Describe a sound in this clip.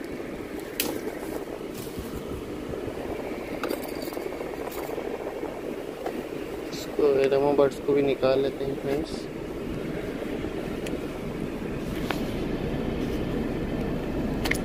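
A car engine hums steadily inside the cabin.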